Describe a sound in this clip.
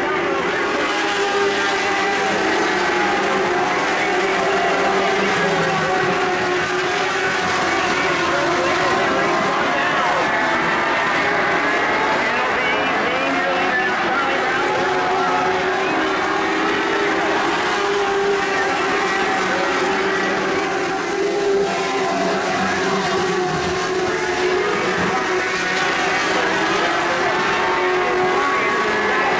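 Several race car engines roar loudly and steadily as the cars circle a dirt track outdoors.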